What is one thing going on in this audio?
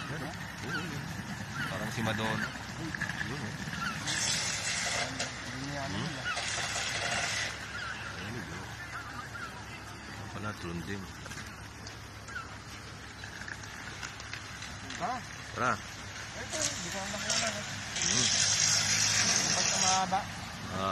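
Men talk nearby with animation.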